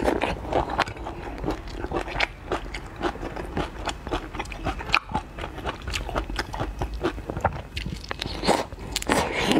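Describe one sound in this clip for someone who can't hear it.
Shell cracks and crunches as hands peel a prawn close to a microphone.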